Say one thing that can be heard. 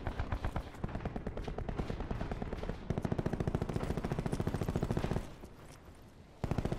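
Rapid automatic gunfire rattles in fast bursts.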